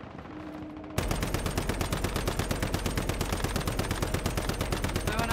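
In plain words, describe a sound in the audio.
A rifle fires in a rapid, steady burst.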